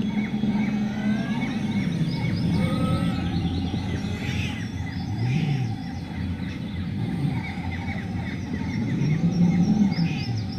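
A heavy vehicle's engine rumbles steadily.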